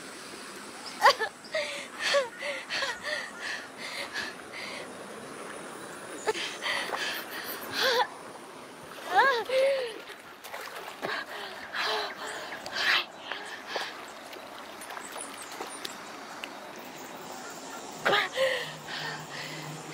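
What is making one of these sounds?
A young woman pants and gasps heavily.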